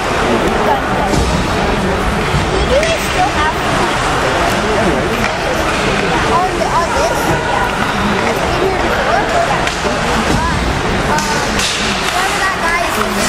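Young men shout and call out to each other in an echoing rink.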